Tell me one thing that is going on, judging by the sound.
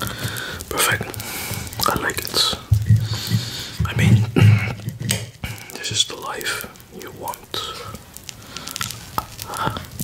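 A knife and fork scrape and clink on a plate.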